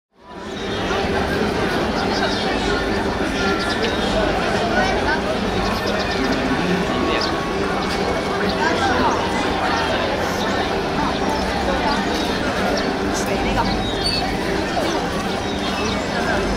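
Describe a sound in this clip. A crowd of people chatters and murmurs all around outdoors.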